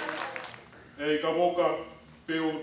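A man speaks steadily into a microphone nearby.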